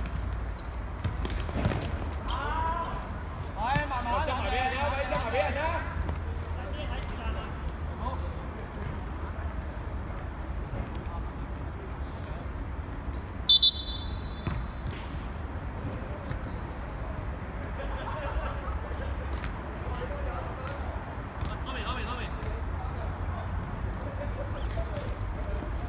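Players shout to each other from across an outdoor pitch.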